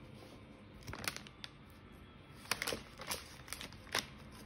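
A knife slices through soft cake.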